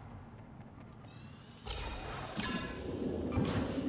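A magical shimmering chime rings out.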